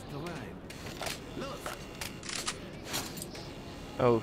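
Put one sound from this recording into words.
A rifle magazine clicks out and snaps back in with metallic clacks.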